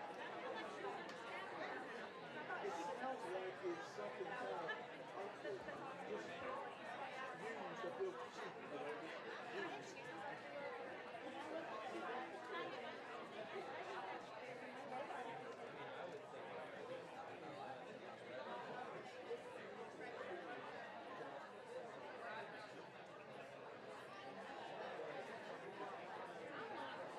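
A large crowd of men and women chatters in a busy echoing room.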